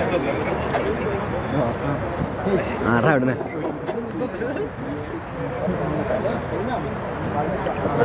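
A crowd of young men chatter and talk over one another outdoors.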